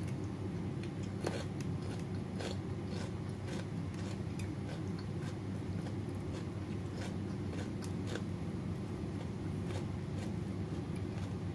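A woman chews wetly with her mouth close to a microphone.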